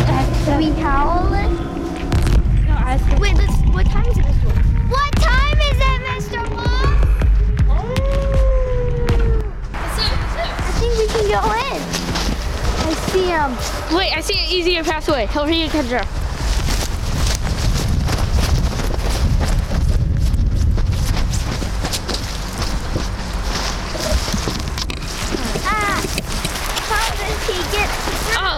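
Young children talk and shout excitedly close by.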